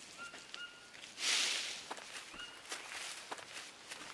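Footsteps crunch softly on dry leaves.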